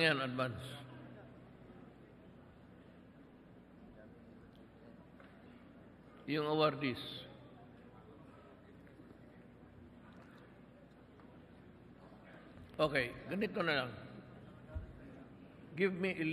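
A man speaks through a microphone in short bursts, echoing in a large hall.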